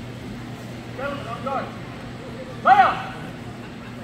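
A man calls out loudly in an echoing hall.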